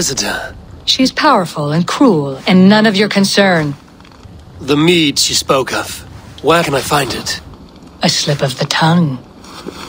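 A woman answers coolly and firmly.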